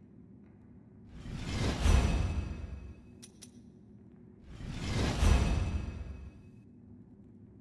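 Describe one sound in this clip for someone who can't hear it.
A deep swelling whoosh rises and fades as an upgrade is bought.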